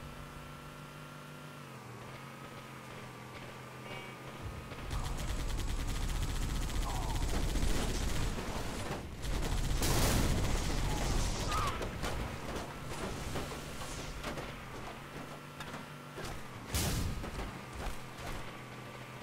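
A vehicle engine hums steadily.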